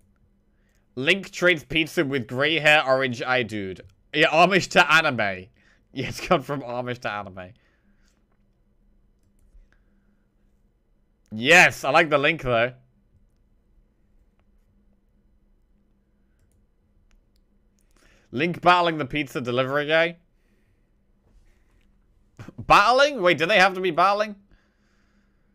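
A young man reads out and talks with animation into a close microphone, in short bursts.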